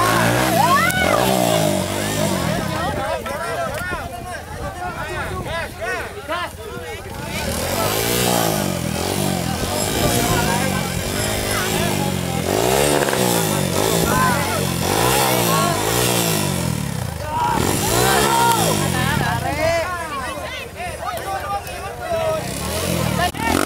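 A motorcycle engine revs and sputters as the bike climbs over tyres.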